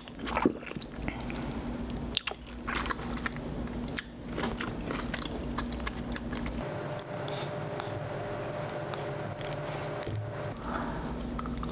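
A woman bites into crispy food with loud crunches close to the microphone.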